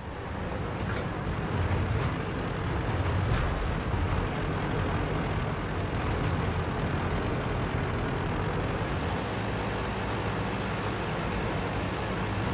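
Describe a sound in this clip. A tank engine rumbles steadily as the tank drives over rough ground.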